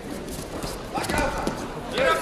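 A judoka is thrown onto a judo mat with a thud.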